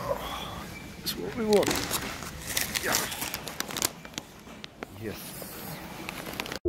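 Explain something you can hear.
A plastic candy bag crinkles and rustles in a hand.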